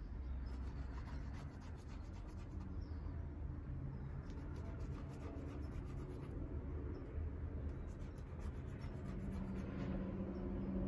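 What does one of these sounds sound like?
A thin stick scratches softly on paper.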